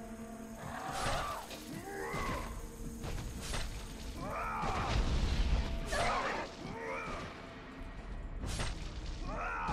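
Blows and slashes clash in a fast fight.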